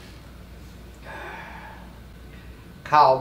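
A middle-aged woman laughs close by.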